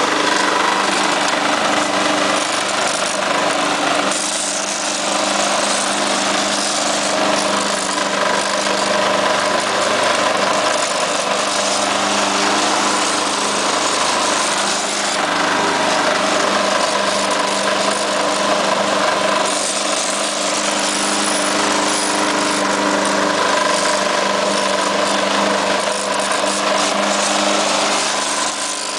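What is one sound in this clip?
A lawn mower engine roars steadily up close.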